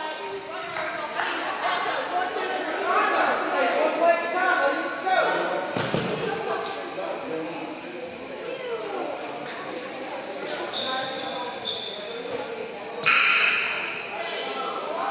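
Men and women chatter across a large echoing hall.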